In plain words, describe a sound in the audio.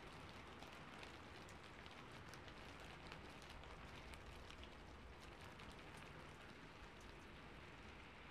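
Hands rustle and brush softly very close to a microphone, with faint crisp ticks.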